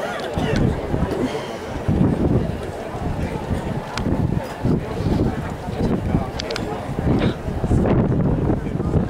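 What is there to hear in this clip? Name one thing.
Horse hooves thud on grass as horses canter.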